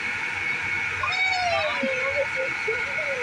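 A young child talks excitedly nearby.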